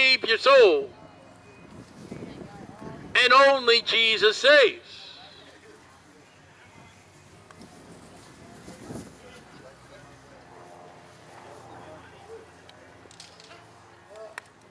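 People talk faintly across a street outdoors.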